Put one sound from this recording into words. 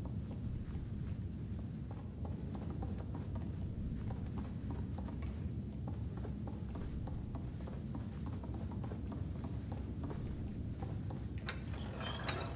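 Small footsteps patter on a wooden floor.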